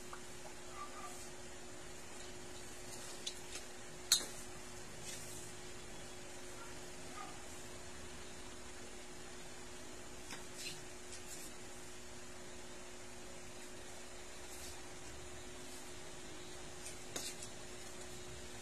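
Clothes rustle softly as they are handled.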